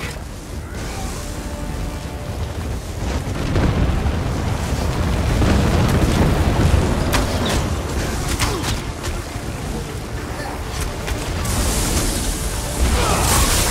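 Lightning crackles loudly.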